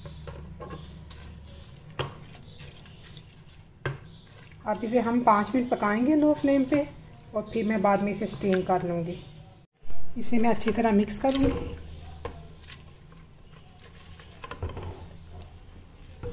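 A spatula stirs a wet mixture in a metal pot.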